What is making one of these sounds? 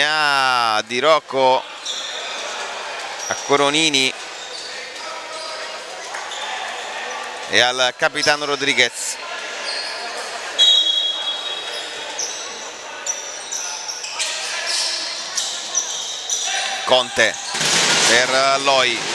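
Spectators murmur in the stands of an echoing hall.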